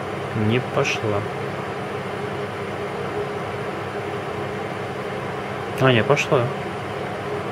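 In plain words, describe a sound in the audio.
A man speaks briefly and calmly close by.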